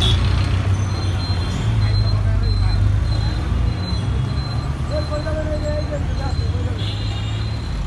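A crowd of men chatter in the background.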